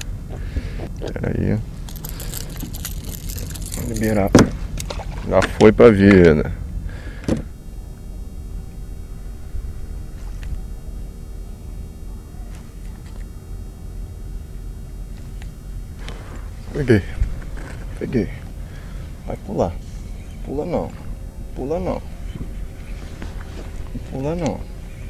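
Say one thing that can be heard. A man talks casually close by, outdoors.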